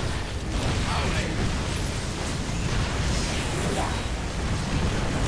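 Guns fire rapidly in a noisy battle.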